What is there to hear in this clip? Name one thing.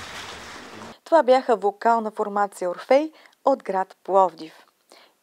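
A woman speaks clearly and with animation into a microphone, close by.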